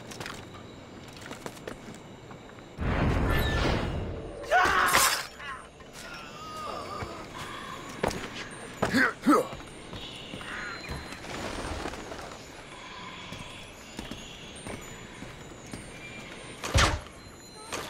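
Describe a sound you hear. Footsteps thud and scuff.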